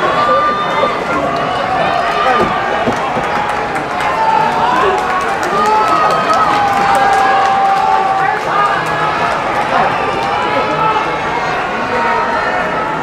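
A large crowd chatters and calls out loudly in a big echoing hall.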